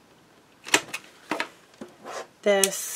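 A stack of card sheets is set down on a table with a soft tap.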